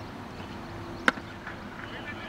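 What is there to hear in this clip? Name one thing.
A cricket bat sharply strikes a ball some distance away.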